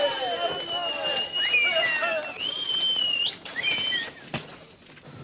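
A crowd of men shouts in an agitated clamour.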